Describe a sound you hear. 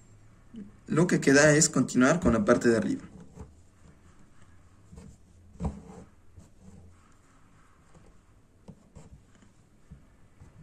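Thread rasps softly as it is pulled through taut fabric.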